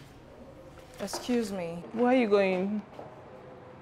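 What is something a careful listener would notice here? A woman talks back briefly.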